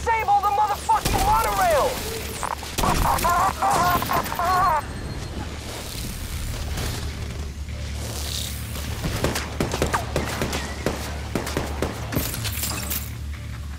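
Rifle shots crack sharply a few times.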